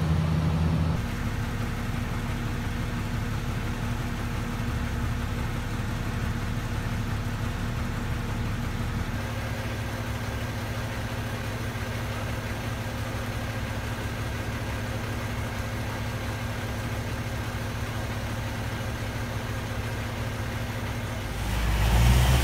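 A large diesel engine idles with a steady low rumble.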